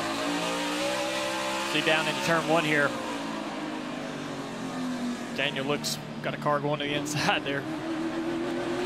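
A race car engine roars steadily from inside the cockpit, its pitch shifting as the car speeds up and slows.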